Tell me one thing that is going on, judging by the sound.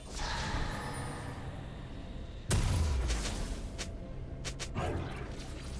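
Game sound effects of spells and hits burst and crackle.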